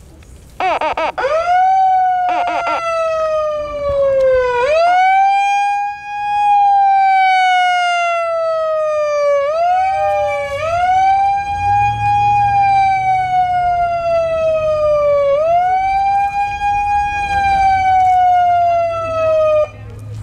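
A megaphone siren wails, rising and falling over and over.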